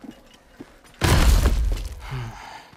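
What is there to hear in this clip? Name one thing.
A heavy body thuds onto the ground.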